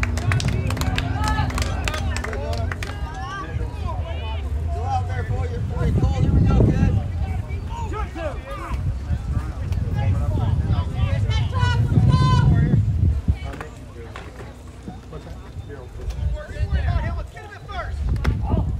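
Young men call out and chatter from a distance outdoors.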